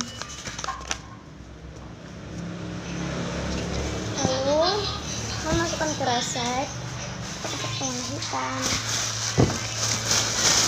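Paper rustles in a young girl's hands.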